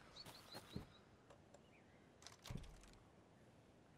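A metal padlock clicks and rattles open.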